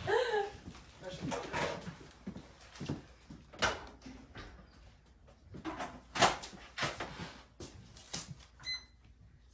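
Dishes and utensils clatter and knock.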